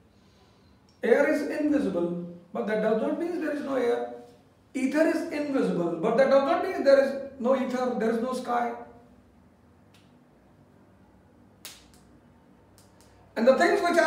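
A man speaks calmly and clearly close to a microphone, in pauses.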